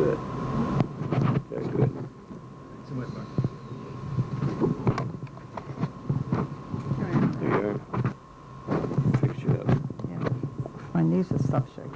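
A man talks at the front of a room.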